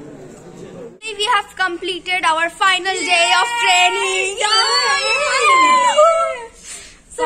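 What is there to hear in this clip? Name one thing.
Young women talk and laugh excitedly close by.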